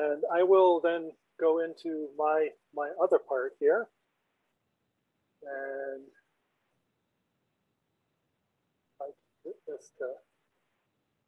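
A middle-aged man speaks calmly and with pauses over an online call.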